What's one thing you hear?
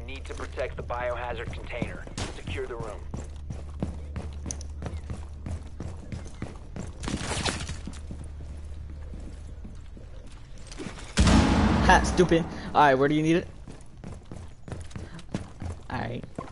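Footsteps thud quickly on wooden floors and stairs.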